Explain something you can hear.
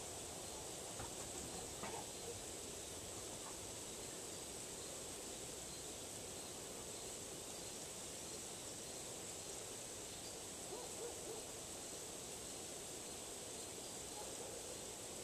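Metal wind chimes ring softly now and then.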